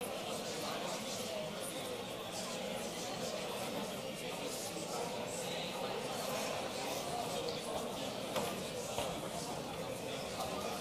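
A man speaks steadily through a microphone in a large, echoing hall.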